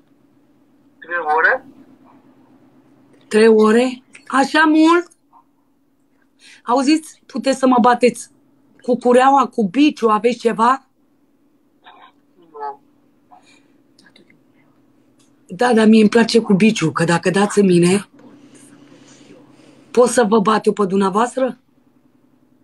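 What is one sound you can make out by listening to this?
A young woman wails and cries loudly over a phone connection.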